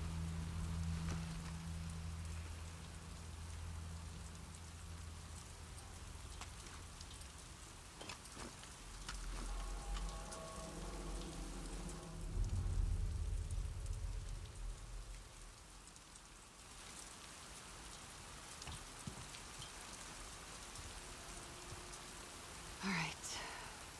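Footsteps splash through wet ground.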